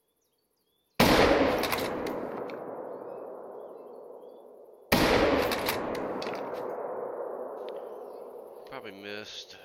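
A rifle fires a loud shot that echoes away over open land.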